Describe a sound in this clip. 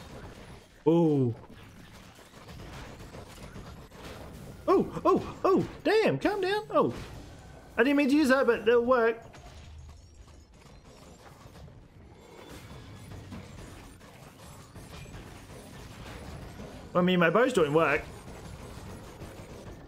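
Explosive magic blasts thump and crackle in a fight.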